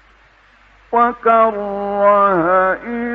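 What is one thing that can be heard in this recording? An elderly man chants in a long, wavering melody, heard through an old microphone recording.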